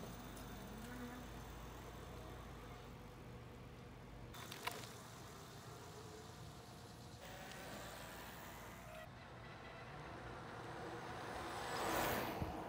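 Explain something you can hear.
Bicycle tyres roll over pavement.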